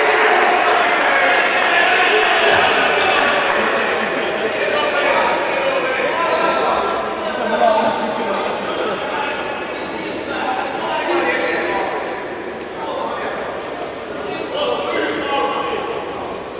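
Men shout to each other in an echoing indoor hall.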